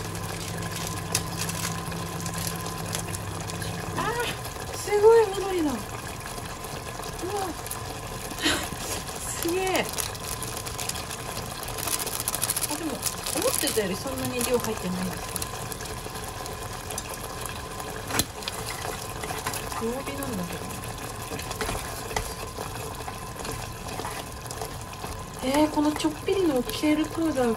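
A pot of stew bubbles and simmers.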